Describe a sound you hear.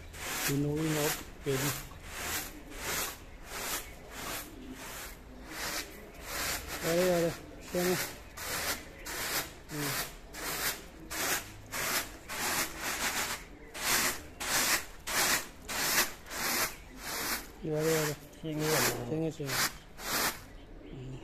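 Grain rustles and hisses as it is tossed rhythmically in a woven tray.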